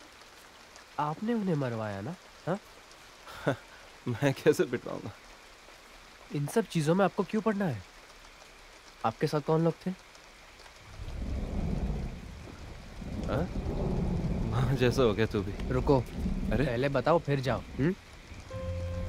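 A man answers in a low, firm voice at close range.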